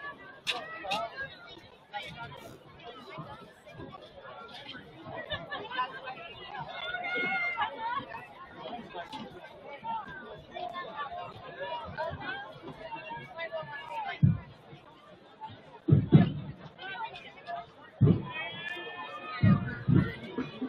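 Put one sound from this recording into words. A crowd of players and spectators chatters and calls out outdoors.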